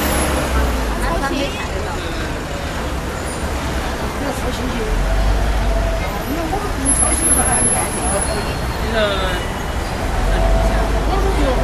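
A middle-aged woman answers in a raised voice.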